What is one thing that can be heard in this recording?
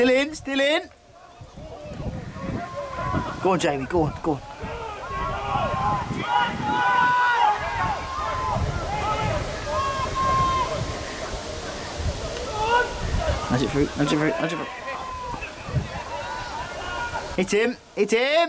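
Rugby players call out to each other across a field.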